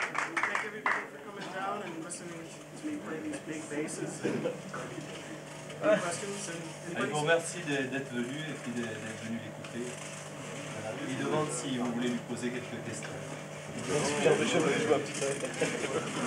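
A bass guitar plays low notes.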